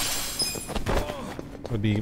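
Fists thud in a brawl.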